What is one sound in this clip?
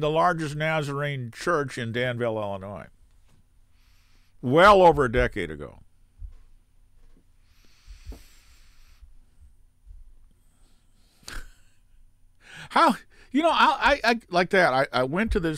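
An elderly man talks calmly close to a microphone, pausing between phrases.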